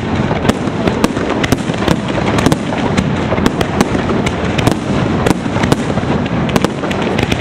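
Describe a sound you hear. Fireworks explode with loud booms.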